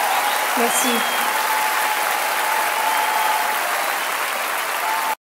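A large crowd cheers and applauds loudly in a big hall.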